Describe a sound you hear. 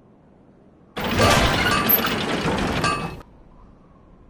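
A short game fanfare plays for a finished upgrade.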